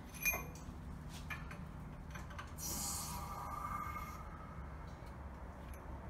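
A hydraulic press handle is pumped with soft mechanical creaks.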